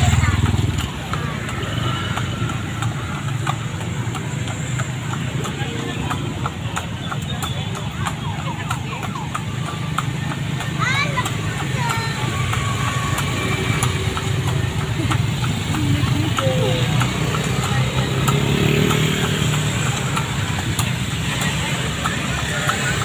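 Motorbike engines hum in busy street traffic.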